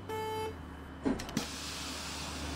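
A bus door hisses and thumps shut.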